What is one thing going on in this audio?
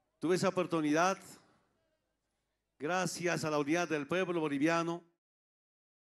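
An elderly man speaks into a microphone over loudspeakers, calmly and firmly, outdoors.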